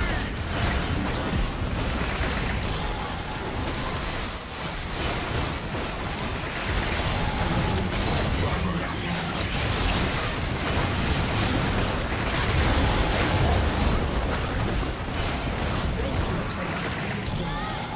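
Magic spells crackle and blast in a fast-paced fight.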